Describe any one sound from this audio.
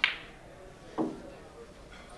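Billiard balls click together.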